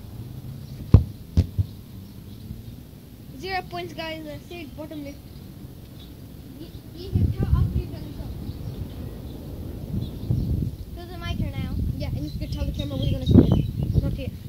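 A soccer ball is kicked with a sharp thump.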